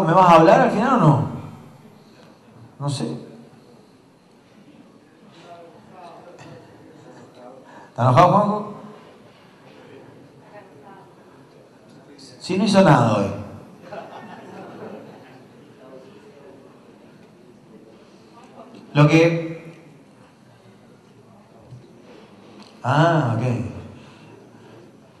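A man speaks in short, loud bursts over a loudspeaker in a large, echoing hall.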